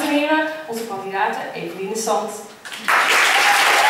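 A woman speaks through a microphone in a large hall.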